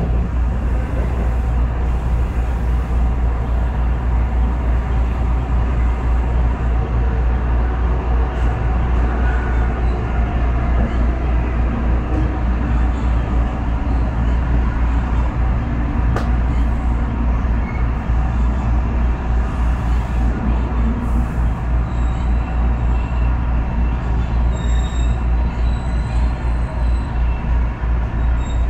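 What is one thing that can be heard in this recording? A train rumbles steadily along the tracks, heard from inside.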